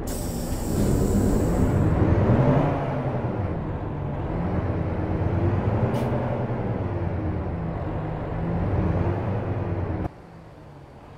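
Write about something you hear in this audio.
A truck's diesel engine rumbles steadily, rising and falling in pitch.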